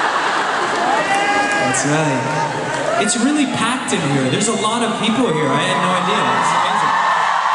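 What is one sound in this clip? A man sings through loudspeakers, heard over a crowd.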